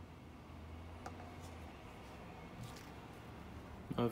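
A knife knocks softly as it is laid on a wooden block.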